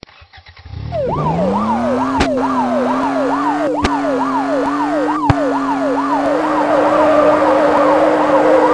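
A police siren wails in a fast rising and falling pattern.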